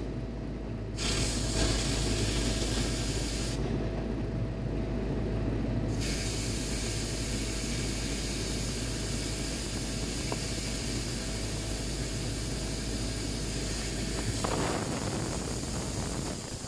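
A gas torch hisses steadily.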